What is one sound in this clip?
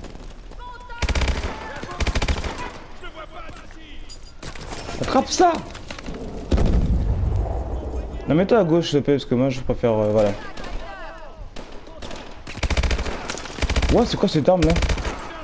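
Rapid gunfire bursts out loudly in short volleys.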